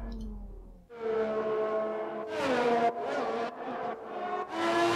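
A racing car engine roars and whines as the car speeds along.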